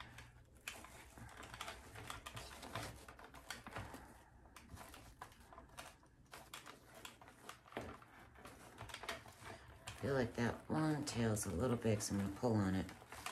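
Wired ribbon rustles and crinkles as hands fluff a bow.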